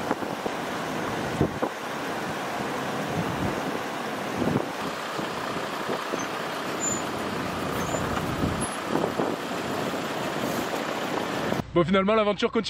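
A river rushes and gurgles over stones.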